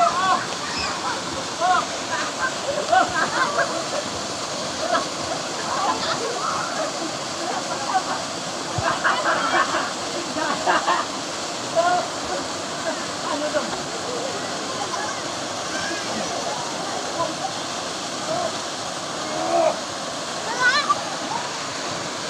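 A waterfall rushes into a pool.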